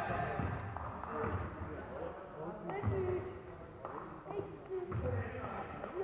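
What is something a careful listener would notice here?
A ball bounces on the court.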